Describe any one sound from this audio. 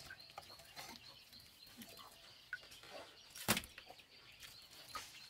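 A hand scoops wet, mushy scraps out of a metal pot, squelching.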